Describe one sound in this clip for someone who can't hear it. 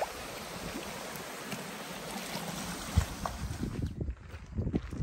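A stream trickles and splashes over rocks.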